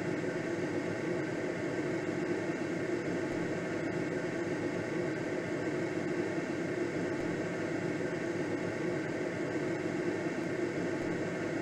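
Wind rushes steadily past a glider's canopy in flight.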